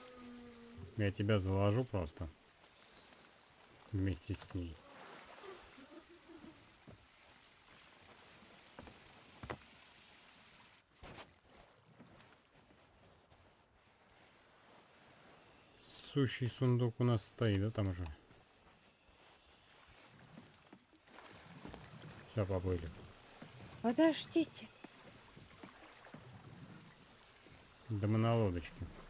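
Small waves lap gently at a shore.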